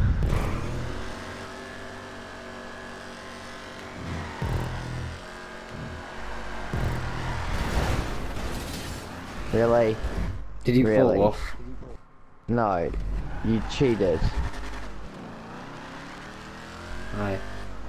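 A car engine revs and hums steadily.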